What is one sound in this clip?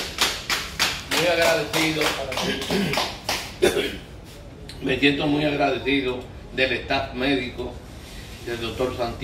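An elderly man speaks close by with emotion.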